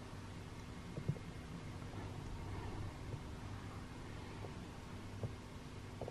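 Foam blocks knock softly against each other.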